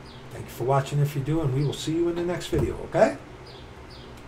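A middle-aged man speaks close to a microphone, calmly and with some animation.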